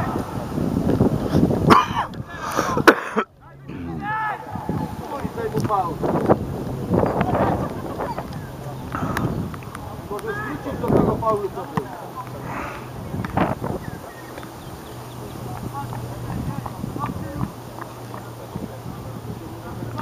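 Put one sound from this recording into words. Football players shout to each other in the distance.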